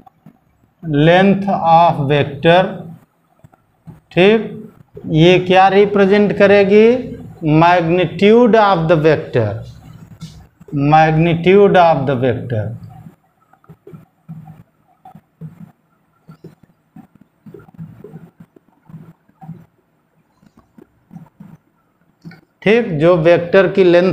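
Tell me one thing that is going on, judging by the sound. An elderly man speaks calmly and clearly, close to a microphone.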